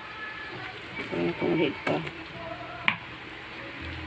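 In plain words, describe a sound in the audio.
Raw meat slaps softly against a wooden cutting board.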